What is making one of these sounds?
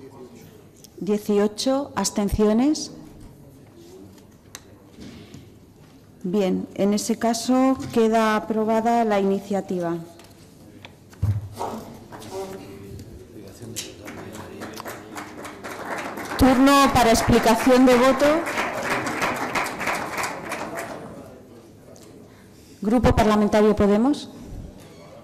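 A middle-aged woman speaks calmly through a microphone in a large hall.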